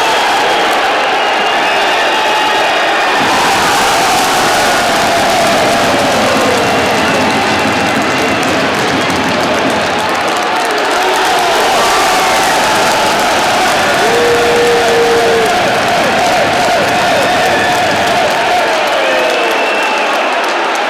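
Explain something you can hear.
A crowd cheers and chatters loudly in a large echoing arena.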